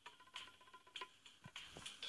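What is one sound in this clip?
A sword swings with a short whoosh.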